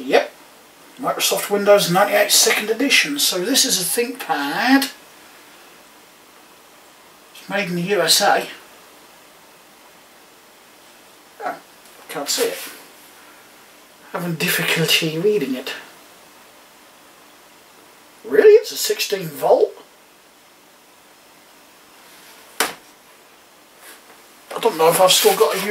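A man speaks calmly up close, in short bursts.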